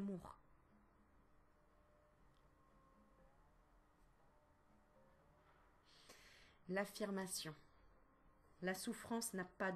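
A woman speaks calmly and warmly, close to a microphone, with pauses.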